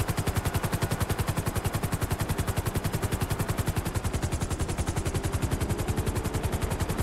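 A helicopter's rotor blades thump rapidly and steadily.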